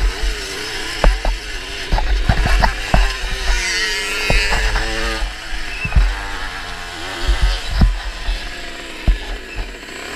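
A motorcycle's suspension knocks and thuds over bumps.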